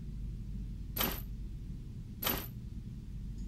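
An electric plug crackles with a sharp spark.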